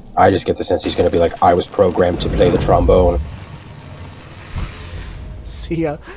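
A fire bursts into flames and roars.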